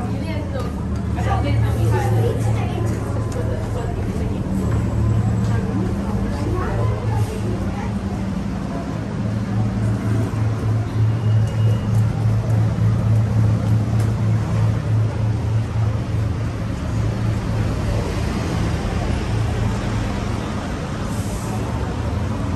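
Footsteps tread on stone steps.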